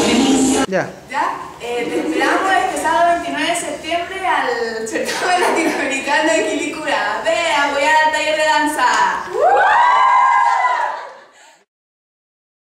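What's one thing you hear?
A group of young women sing together loudly and cheerfully.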